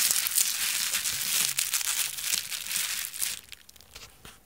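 Plastic bubble wrap crinkles and rustles loudly up close.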